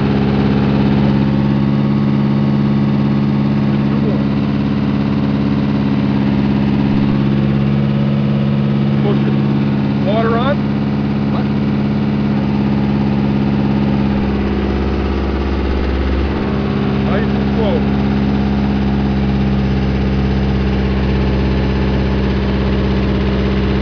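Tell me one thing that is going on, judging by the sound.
A diesel engine drones steadily up close.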